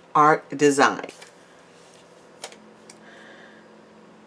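Paper rustles softly as a sheet is lifted and moved.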